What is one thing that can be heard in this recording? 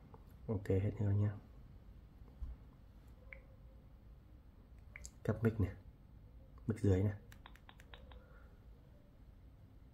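A finger taps lightly on a phone's touchscreen.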